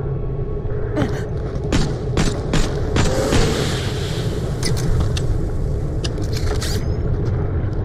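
A gun fires several quick shots.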